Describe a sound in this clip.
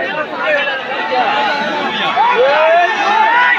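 Several men in the crowd yell with rising excitement.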